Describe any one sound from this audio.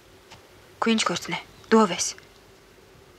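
A young woman speaks briefly and emphatically, close by.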